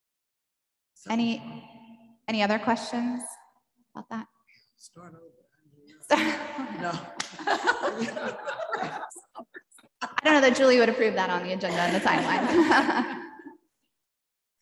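A woman speaks calmly into a microphone in a large room.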